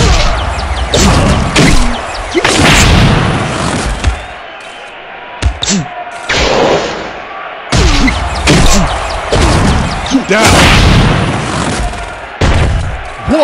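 A whooshing blast roars as a special punch hits.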